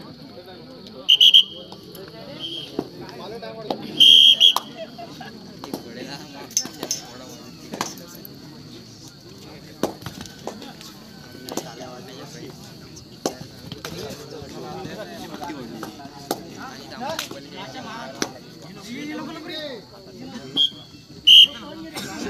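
A whistle blows in short sharp blasts.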